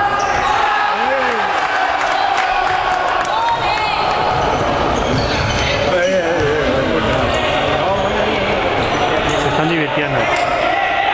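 Sneakers squeak on a hard court floor in an echoing hall.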